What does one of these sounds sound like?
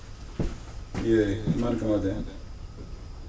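A young man talks on a phone nearby.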